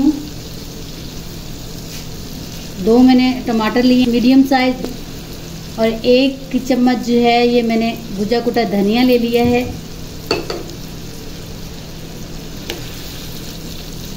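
Meat sizzles in hot oil in a pan.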